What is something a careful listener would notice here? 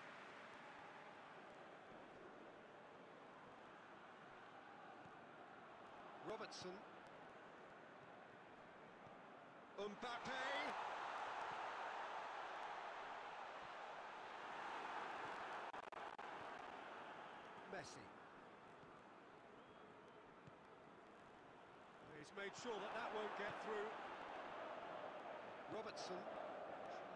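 A video game's stadium crowd murmurs and swells into cheers.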